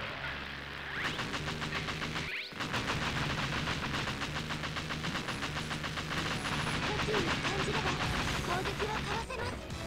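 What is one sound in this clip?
Rapid laser blasts fire in a fast, steady stream.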